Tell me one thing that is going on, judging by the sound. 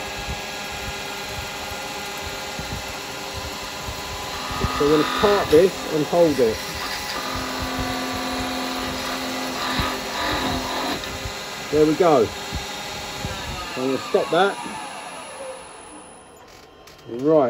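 A wood lathe hums steadily and then winds down.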